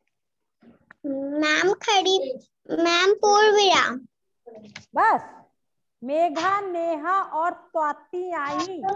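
A young girl speaks through an online call.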